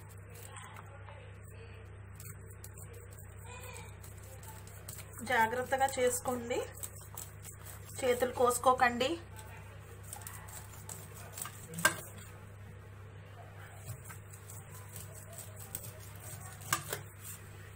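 A knife scrapes corn kernels off a cob onto a metal plate.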